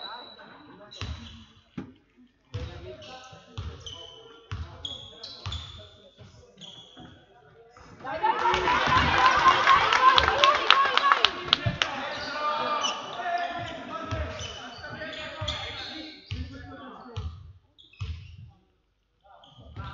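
A basketball bounces on a hard court, echoing in a large hall.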